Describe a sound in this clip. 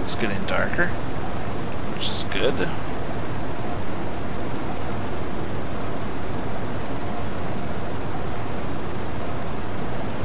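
Waves wash and rumble steadily.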